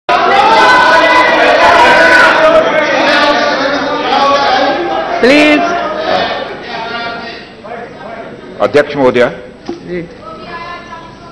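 Several men talk and shout over one another in a large echoing hall.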